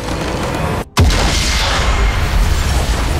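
A huge crystal explodes with a deep, rushing boom.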